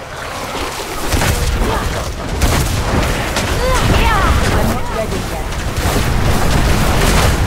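Fire roars and whooshes in swirling bursts.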